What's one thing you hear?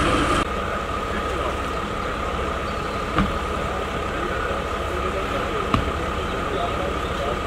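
Men talk quietly nearby, outdoors.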